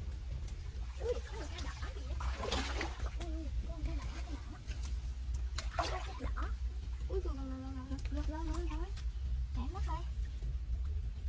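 A young girl speaks softly up close.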